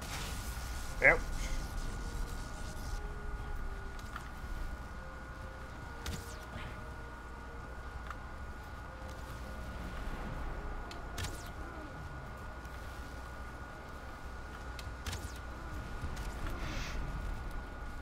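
A fireball bursts with a sharp whoosh.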